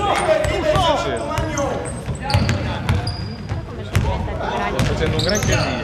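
A basketball bounces on the floor as a player dribbles.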